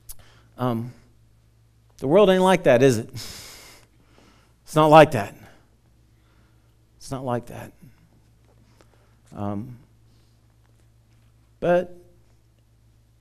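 A man speaks through a headset microphone in short, spaced phrases, in a lightly echoing hall.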